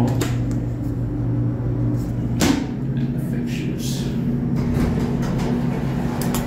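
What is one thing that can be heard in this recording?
An elevator car hums steadily as it runs.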